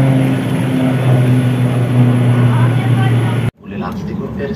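An aircraft engine hums loudly and steadily outdoors.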